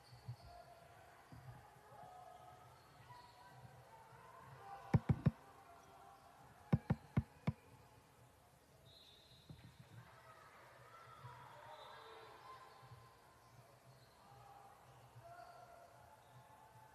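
Young women call out faintly in an echoing hall.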